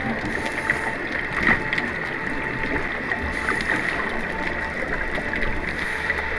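Bubbles from a diver's breathing gurgle and crackle underwater.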